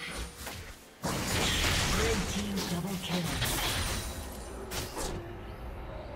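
Game spell effects burst and crackle during a fight.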